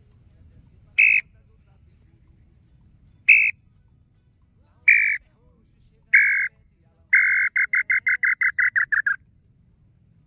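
A man blows a bird call whistle in short shrill chirps, then a fast trill.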